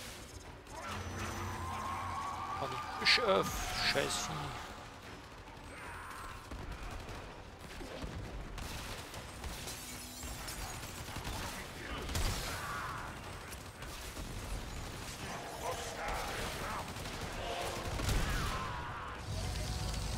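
Video game gunfire and explosions boom and crackle.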